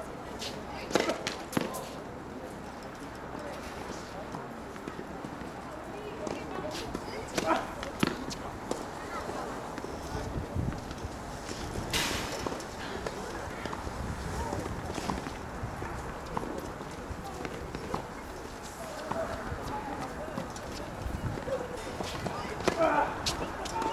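Tennis balls are struck with rackets, with sharp pops outdoors.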